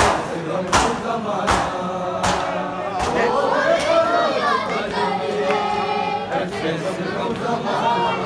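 A crowd of men chant loudly in unison nearby.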